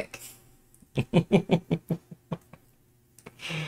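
A man laughs softly nearby.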